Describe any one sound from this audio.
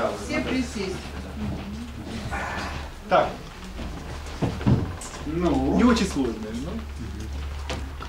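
A man talks close by with animation.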